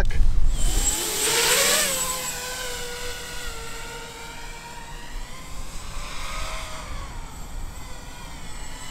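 A small drone's motors whine loudly, rising in pitch as it takes off, then fade into the distance.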